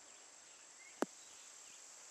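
A golf ball lands with a soft thud.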